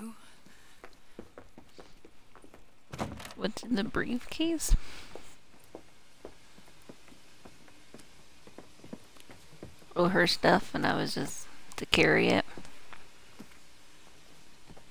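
Footsteps knock on a wooden floor.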